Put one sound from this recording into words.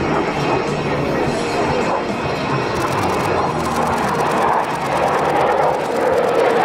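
A jet engine roars loudly overhead with a steady rushing noise.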